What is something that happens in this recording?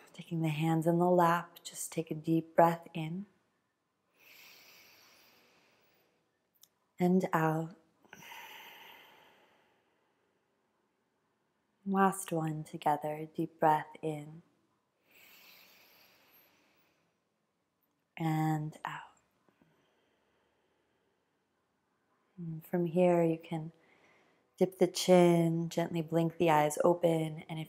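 A young woman speaks calmly and softly, close by, in short phrases with pauses.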